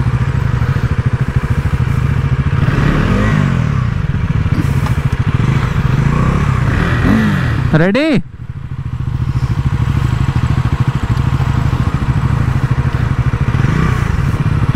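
A motorcycle engine idles with a steady, throbbing putter.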